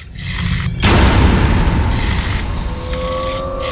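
A telephone receiver's hook switch clicks as it is pressed down.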